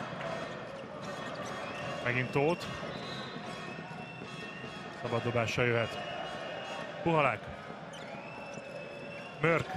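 A large crowd murmurs in a big echoing arena.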